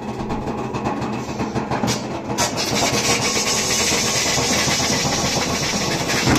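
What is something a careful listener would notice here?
Buttons on a washing machine beep as they are pressed.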